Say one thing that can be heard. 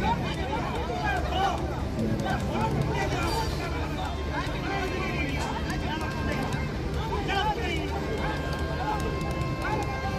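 A crowd of people chatters and calls out nearby.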